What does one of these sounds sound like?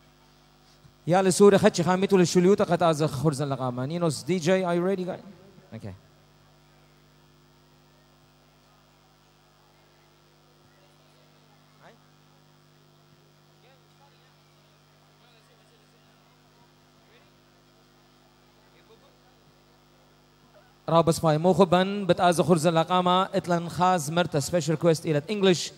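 A man sings loudly into a microphone, heard through a loudspeaker.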